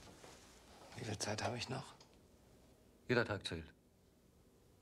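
An older man speaks calmly.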